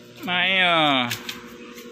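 Paper banknotes rustle under a hand.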